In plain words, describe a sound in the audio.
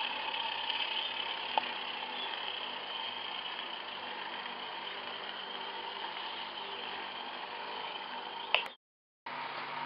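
A small model steam locomotive hisses and chuffs steadily.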